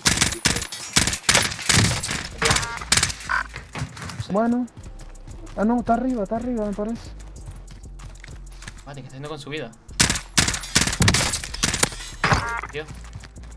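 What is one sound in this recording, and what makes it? Rifle shots crack sharply in quick bursts.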